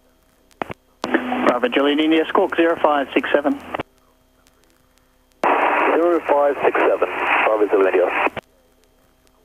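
A man speaks calmly through a headset radio.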